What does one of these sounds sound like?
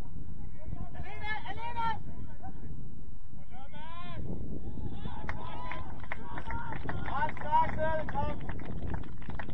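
Young male players shout to each other across an open football pitch.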